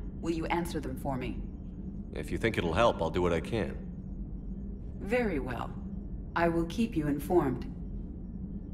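A woman speaks calmly in a smooth voice.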